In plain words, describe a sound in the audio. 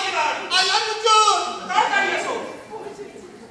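A man shouts loudly in an echoing hall.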